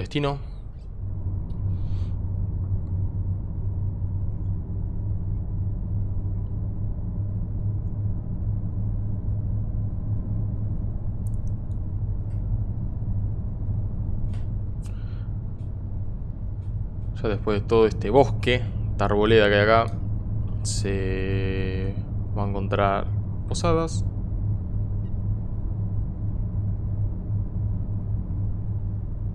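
A bus engine hums low and steady as it drives along.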